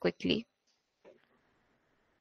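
A young woman speaks briefly and calmly over an online call.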